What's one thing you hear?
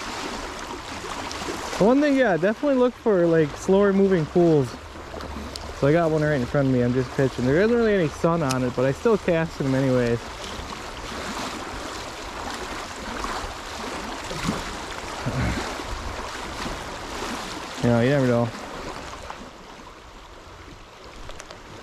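A fishing reel clicks as it is cranked.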